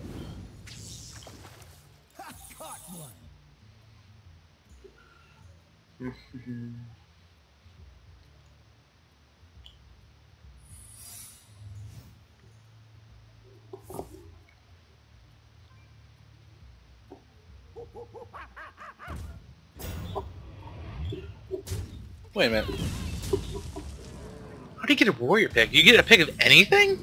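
Game card effects chime and whoosh.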